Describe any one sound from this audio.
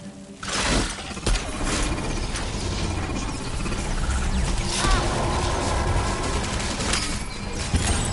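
Laser beams zap and hum in a game.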